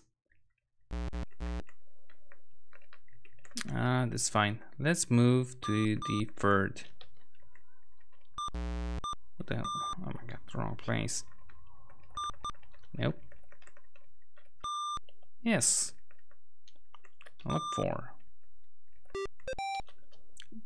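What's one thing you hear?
A computer game gives out short electronic beeps and buzzes.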